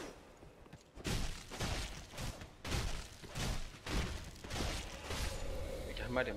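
A sword slashes and strikes with heavy thuds.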